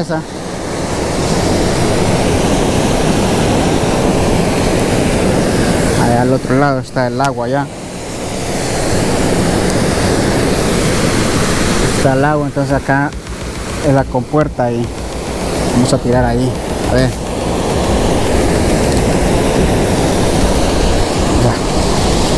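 Water gushes and splashes steadily from an outlet into a channel.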